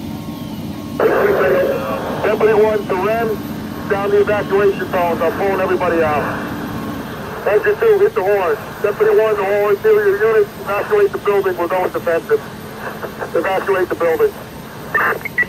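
Men talk and call out loudly outdoors.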